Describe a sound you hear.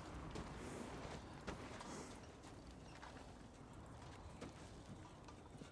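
A wooden coach creaks.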